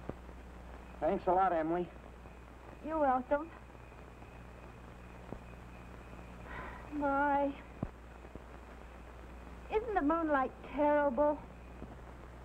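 A young woman speaks brightly in short phrases.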